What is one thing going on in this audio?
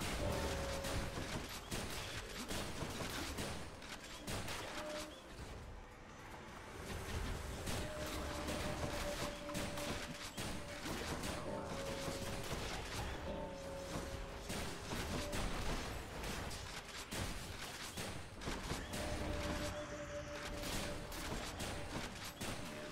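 Video game combat effects clash and thud rapidly.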